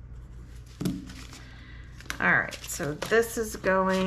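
Paper bills rustle as they are counted by hand.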